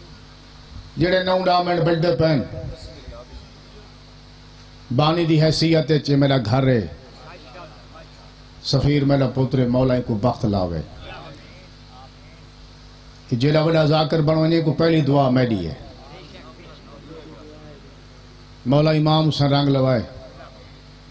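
A man chants loudly into a microphone in long, sung phrases with pauses between them.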